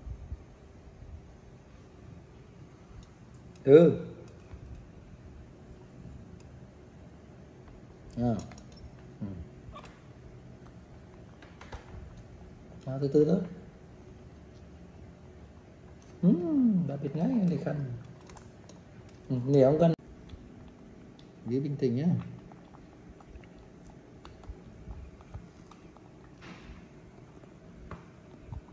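Fingers peel the skin off an orange.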